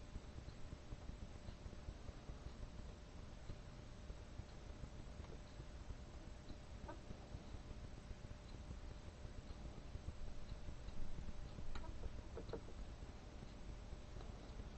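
Needles of a hand-cranked knitting machine click and rattle softly.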